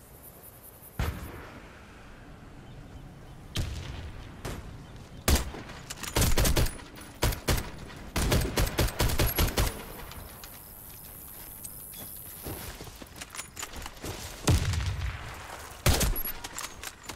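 Loud gunshots bang out one after another.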